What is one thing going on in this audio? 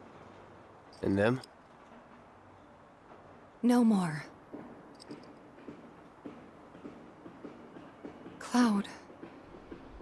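A young man speaks calmly and curtly.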